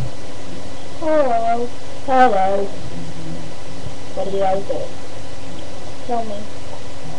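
A young girl speaks close to a microphone in a high, sing-song voice.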